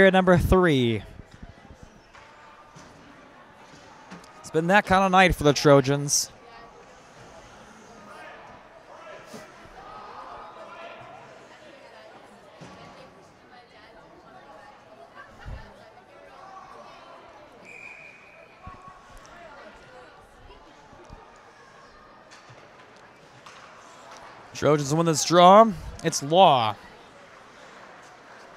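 A crowd murmurs faintly in a large echoing rink.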